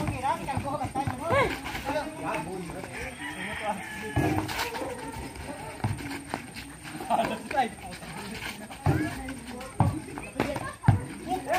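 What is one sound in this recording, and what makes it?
A basketball bounces on hard ground with dull thumps.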